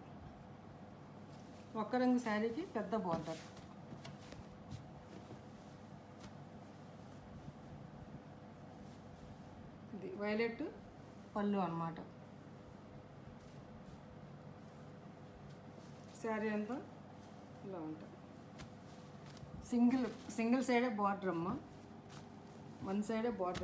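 Cloth rustles softly as it is unfolded and handled.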